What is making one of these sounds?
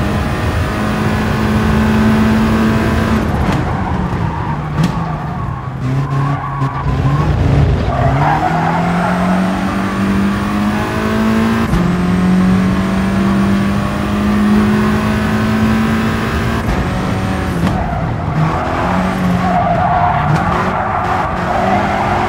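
A racing car engine roars loudly, its pitch rising with each gear and dropping when it slows.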